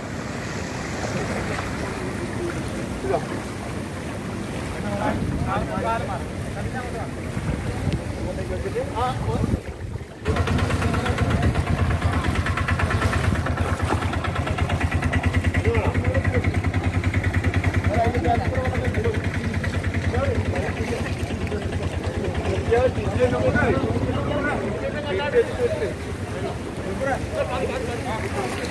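Men talk and call out to each other nearby, outdoors.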